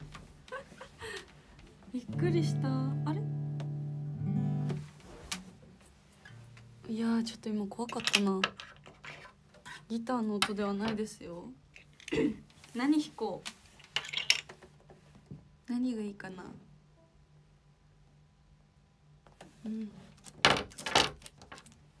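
A young woman talks brightly and close by.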